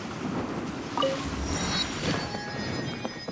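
A bright chime rings out.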